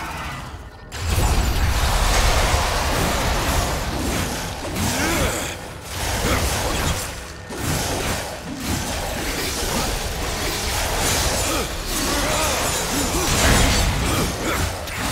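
A blade swings and slashes repeatedly in a fight.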